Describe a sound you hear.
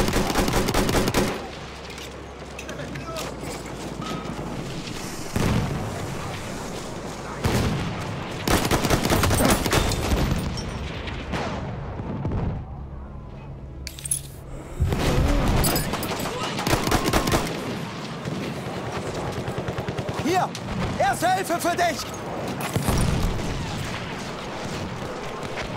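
Gunfire and battle noise rumble in the distance.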